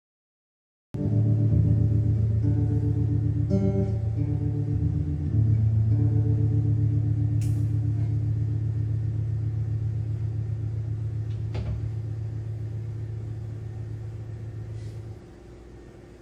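An electric guitar plays a sustained chord through an amplifier.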